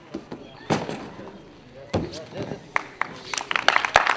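A gymnast's feet thud onto a padded mat after a vault.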